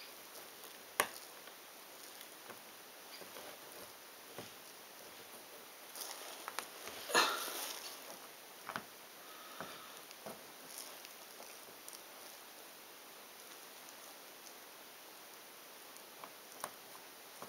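Jigsaw puzzle pieces click and tap softly on a board.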